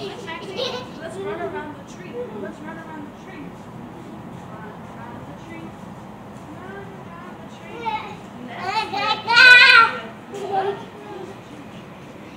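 A woman talks to a child from a short distance.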